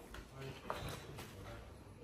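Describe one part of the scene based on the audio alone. A paper gift bag rustles.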